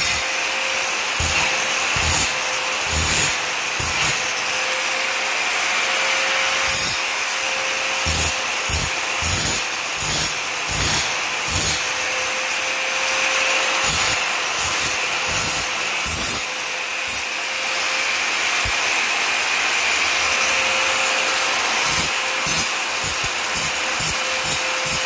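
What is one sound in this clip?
An angle grinder's disc screeches as it grinds metal.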